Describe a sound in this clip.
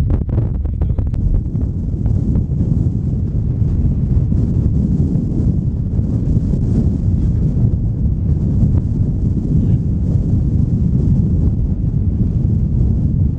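Wind rumbles steadily across open ground outdoors.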